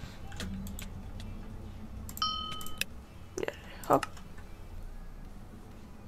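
Short, sharp clicks sound now and then.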